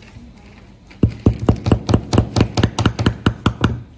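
A hammer taps rapidly on metal pins.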